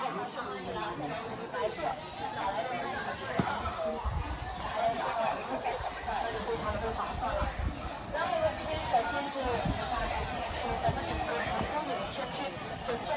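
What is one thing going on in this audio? A large crowd of men and women chatters all around outdoors.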